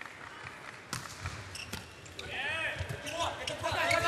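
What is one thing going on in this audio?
A volleyball is struck hard during a rally.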